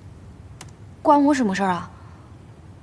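A young woman answers curtly, close by.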